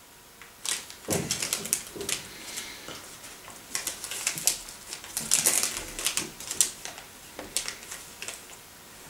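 A wrapper crinkles and rustles in a man's hands.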